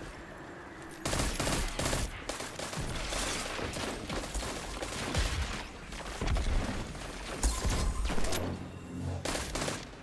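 Rifle gunfire rings out in rapid bursts.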